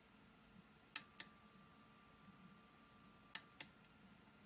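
A faint high-pitched electronic whine hums steadily.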